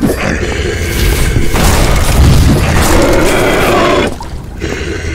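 A fireball whooshes and roars.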